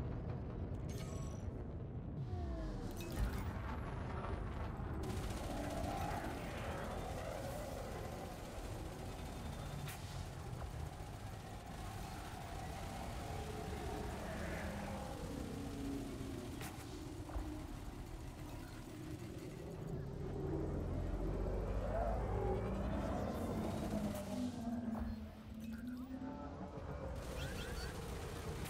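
A low engine hum drones steadily.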